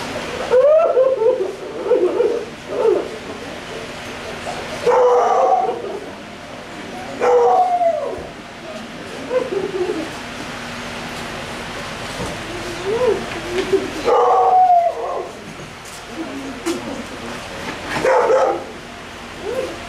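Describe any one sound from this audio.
Men talk nearby in low, calm voices.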